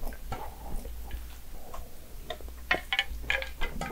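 A woman sips and swallows a drink close to a microphone.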